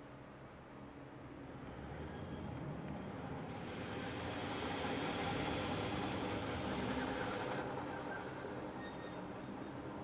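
A tank engine rumbles nearby, growing louder and then fading.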